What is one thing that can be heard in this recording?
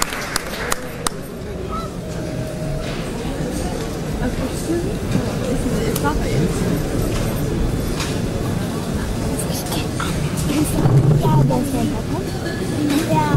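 A band plays music through loudspeakers.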